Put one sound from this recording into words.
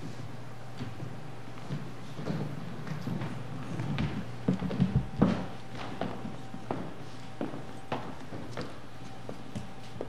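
People shuffle and step about on a hard floor.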